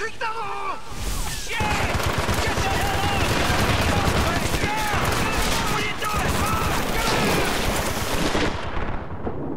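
Heavy rain and sea spray roar in strong wind.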